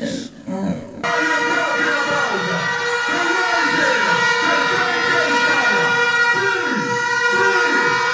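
A man raps forcefully into a microphone through loud speakers.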